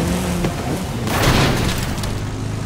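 A car thuds against a metal wall.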